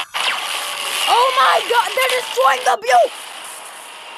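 A crackling energy burst hisses and roars.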